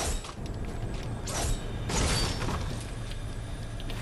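Game building pieces snap into place with quick clattering thuds.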